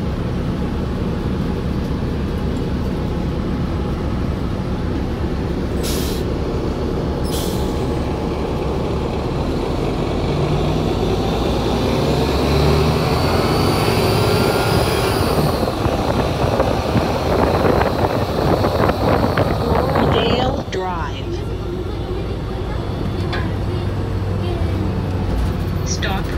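A car drives along with a steady low engine and road rumble.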